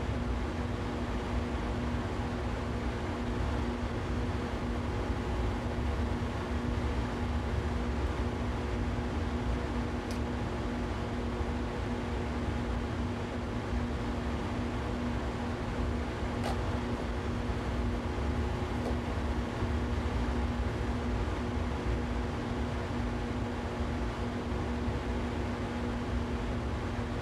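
An electric train hums steadily as it runs along the tracks.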